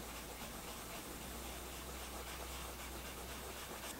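A pastel stick rubs softly on paper.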